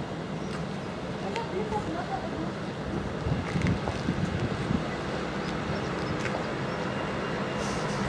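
A train rumbles slowly into a station.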